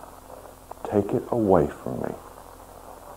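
A man speaks briefly and calmly, close to a microphone.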